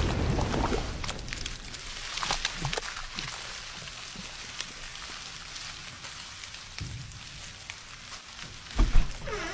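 Liquid hisses and sizzles softly.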